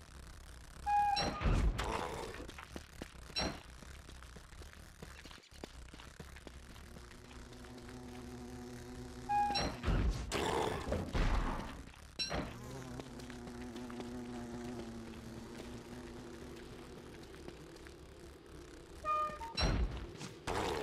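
A giant creature stomps down with heavy, booming thuds.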